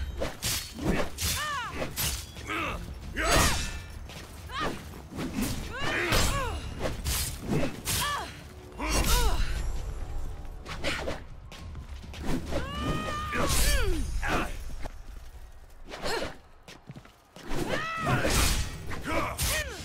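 Swords clash and ring with sharp metallic clangs, many times in quick succession.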